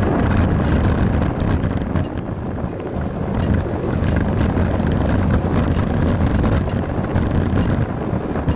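Bicycle tyres roll and rattle over an asphalt road.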